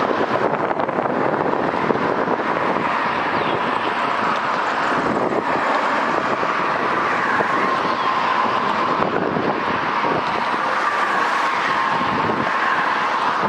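Steel wheels squeal faintly on the rails.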